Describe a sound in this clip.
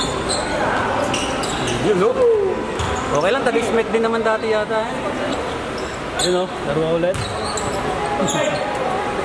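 A basketball bounces on a hardwood court in an echoing indoor hall.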